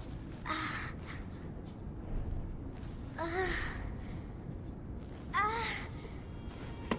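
A young girl groans weakly in pain.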